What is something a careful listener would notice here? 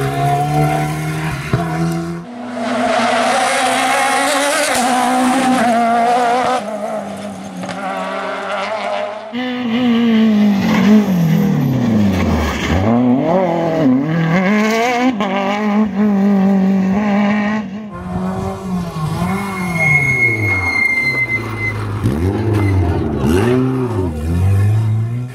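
A rally car engine roars and revs hard, rising and falling in pitch as it races past.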